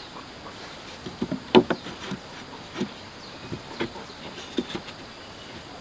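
Bamboo poles knock sharply against wooden boards.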